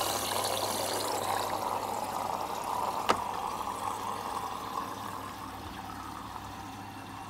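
A washing machine hums and whirs steadily.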